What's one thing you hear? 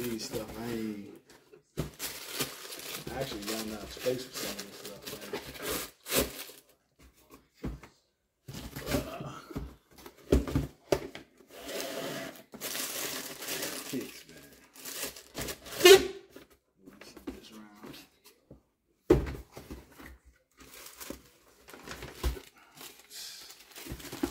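Cardboard shoe boxes rustle and thump as they are handled.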